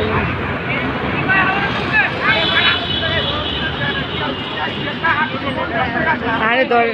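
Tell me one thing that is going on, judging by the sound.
A crowd of men and women chatter nearby on all sides.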